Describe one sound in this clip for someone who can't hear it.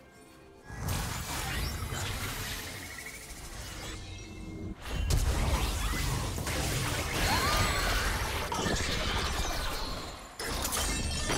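Video game combat effects clash and burst in quick succession.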